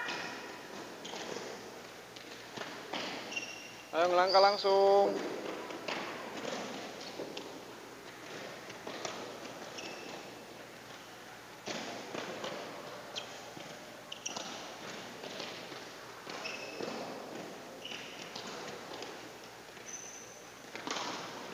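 Rackets hit shuttlecocks with light pops in an echoing hall.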